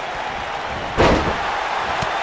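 A body slams hard onto a wrestling ring mat.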